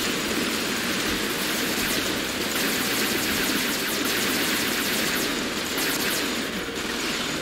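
Rapid gunfire rattles from a robot's weapons.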